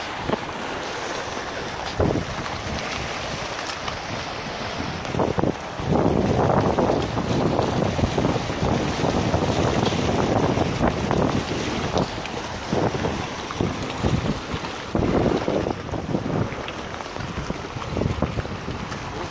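Rushing water churns and roars steadily outdoors in wind.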